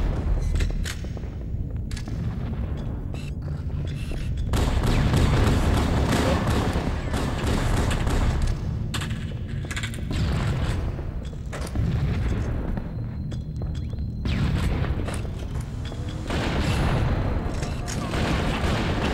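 Guns fire in rapid bursts in a video game.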